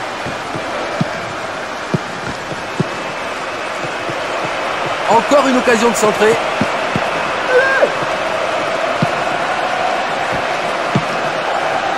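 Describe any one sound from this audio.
A football is kicked with short, dull thuds.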